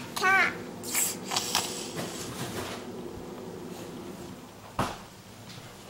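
A baby babbles nearby.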